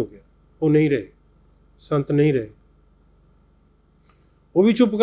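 An elderly man speaks slowly and calmly into a nearby microphone, with pauses.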